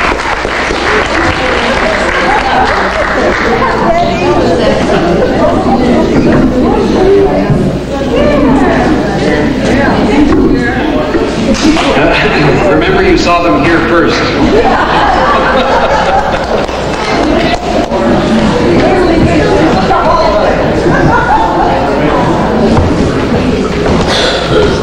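A crowd of elderly people chatters in the background.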